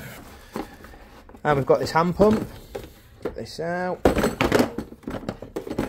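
Metal tools clink and rattle in a plastic case.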